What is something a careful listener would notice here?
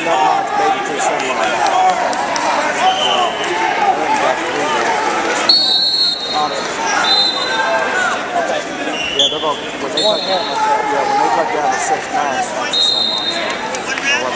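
A crowd cheers and shouts throughout a large echoing hall.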